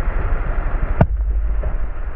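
A heavy log thuds onto the ground.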